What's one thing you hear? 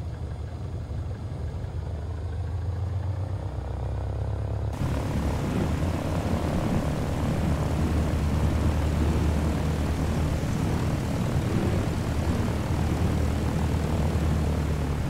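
A small propeller plane's engine drones steadily, growing louder.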